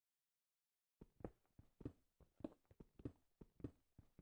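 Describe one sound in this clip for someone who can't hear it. A pickaxe chips at stone in quick, steady blows.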